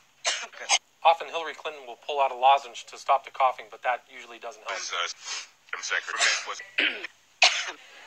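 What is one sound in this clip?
A woman speaks hoarsely into a microphone.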